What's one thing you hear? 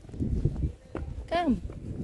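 Small children run with light footsteps on paving.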